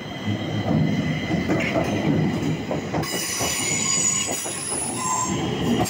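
A metro train rumbles past on the tracks.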